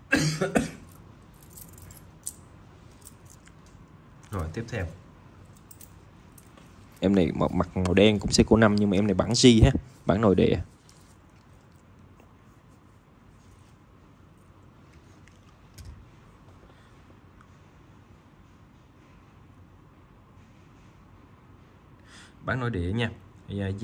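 Metal watch bracelets clink softly as hands handle them.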